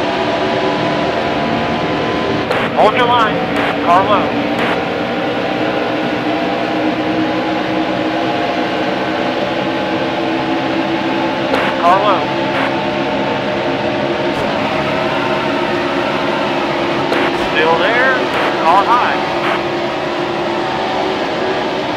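Racing car engines roar steadily at high speed.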